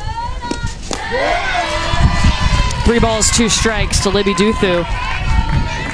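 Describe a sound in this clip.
A crowd cheers and claps.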